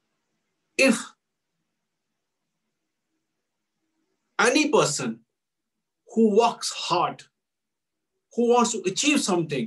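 An elderly man speaks with animation over an online call, in short bursts with pauses.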